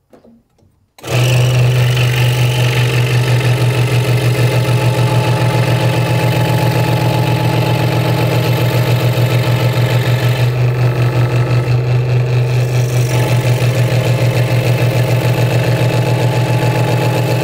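A scroll saw buzzes steadily as its blade cuts through wood.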